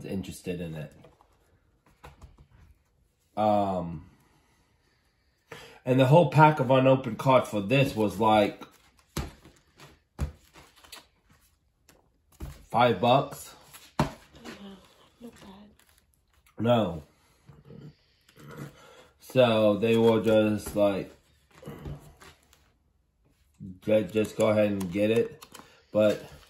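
Plastic card sleeves crinkle and rustle as pages are handled.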